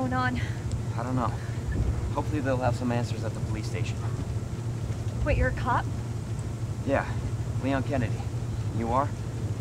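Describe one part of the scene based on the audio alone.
A young man answers calmly and quietly.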